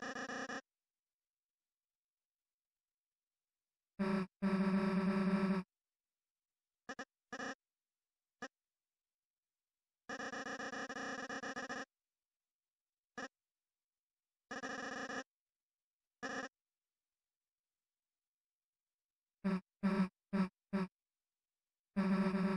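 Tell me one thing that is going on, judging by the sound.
Rapid electronic blips chatter in short bursts as dialogue text types out.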